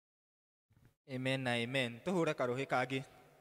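A man speaks through loudspeakers in a large room.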